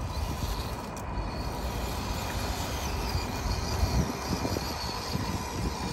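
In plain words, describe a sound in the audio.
Plastic tyres crunch over dry leaves and dirt.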